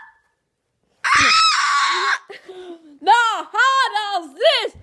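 A young boy speaks excitedly in a high, squeaky voice close to the microphone.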